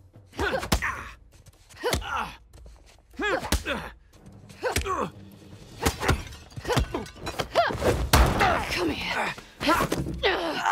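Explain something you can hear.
A man grunts and shouts in pain.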